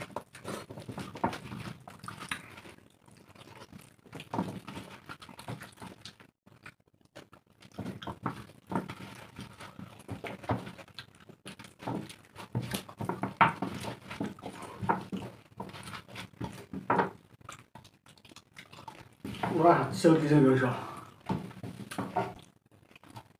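Hands squish and mix soft food on metal plates.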